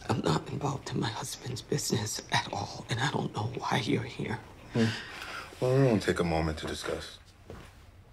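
A man speaks angrily up close.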